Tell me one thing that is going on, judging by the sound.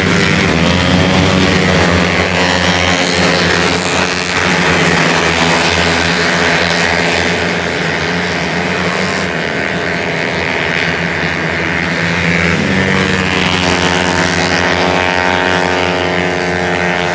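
Motorcycle engines whine loudly as they race past.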